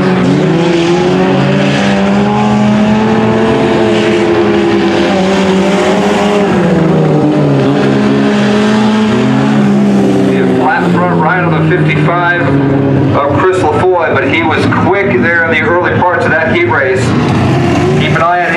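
Race car engines roar and whine as cars speed around a dirt track.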